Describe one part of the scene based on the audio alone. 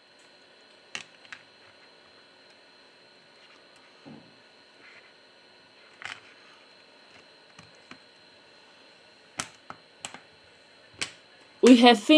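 A plastic phone back cover snaps into place with sharp clicks.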